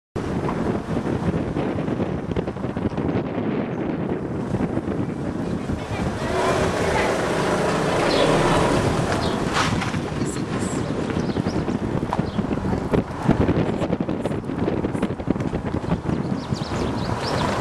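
Wind rumbles and buffets outdoors throughout.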